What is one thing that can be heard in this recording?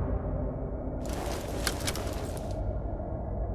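A gun is swapped for another with quick metallic clicks and rattles.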